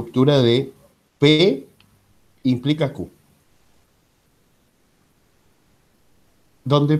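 A man speaks calmly in short phrases, heard through an online call.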